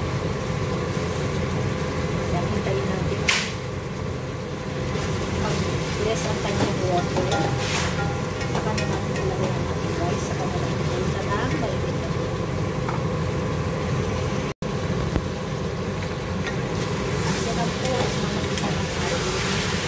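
Meat sizzles in a hot pot.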